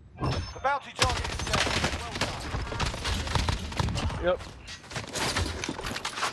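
A video game rifle fires in sharp bursts.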